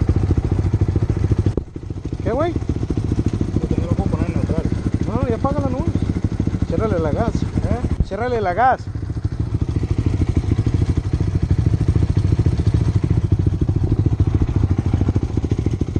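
A motorcycle engine idles with a steady, rapid putter close by.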